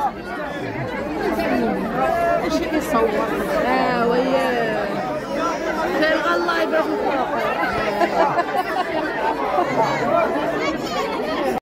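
A large crowd chatters and calls out all around, outdoors.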